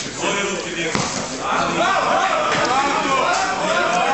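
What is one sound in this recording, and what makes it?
Kicks and punches thud against bodies.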